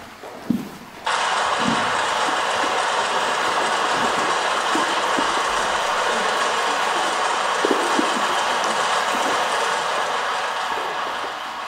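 Loud, steady clattering machinery noise plays through loudspeakers.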